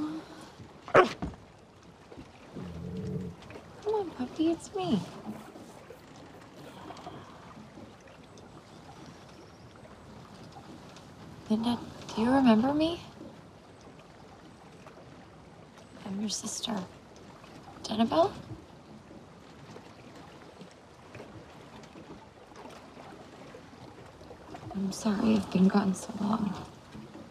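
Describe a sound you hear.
A teenage boy speaks softly.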